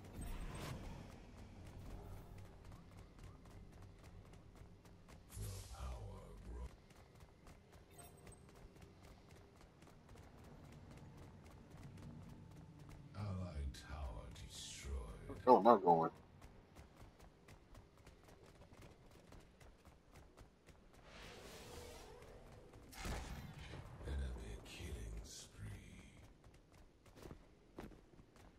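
Footsteps thud on the ground as a game character runs.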